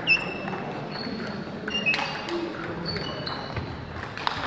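Sneakers squeak on a hall floor.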